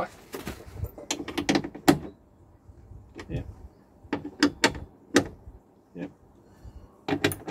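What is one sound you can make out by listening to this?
A metal tool clicks and taps against metal.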